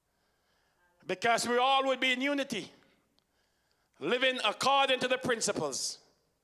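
A man preaches loudly and with feeling into a microphone.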